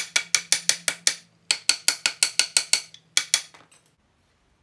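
A hammer strikes metal in rapid, ringing blows.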